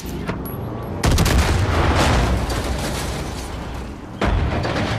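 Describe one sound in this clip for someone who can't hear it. A booming explosion rolls out and fades.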